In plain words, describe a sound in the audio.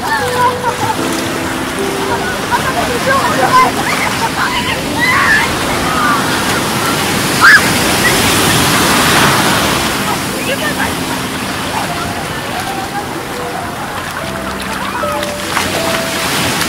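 Waves break and wash around in the sea.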